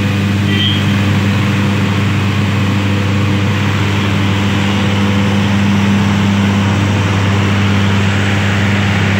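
Tractor diesel engines rumble and chug loudly nearby.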